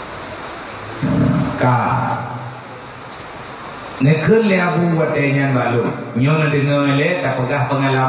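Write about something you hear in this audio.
A man speaks loudly and with feeling into a microphone, heard through a loudspeaker in an echoing room.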